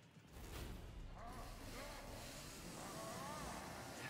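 A chainsaw revs loudly.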